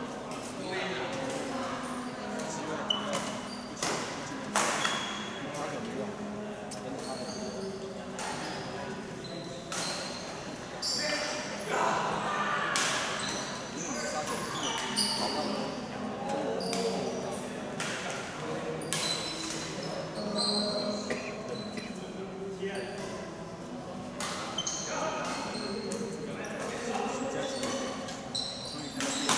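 Voices of young men chatter and call out in a large echoing hall.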